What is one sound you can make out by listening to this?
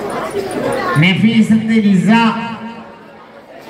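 A man chants in a drawn-out singing voice over loudspeakers.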